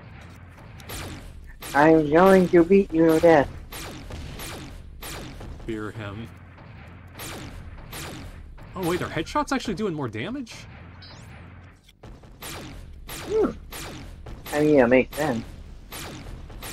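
Energy weapon shots blast in quick bursts.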